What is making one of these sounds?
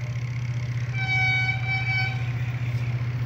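A train horn sounds in the distance.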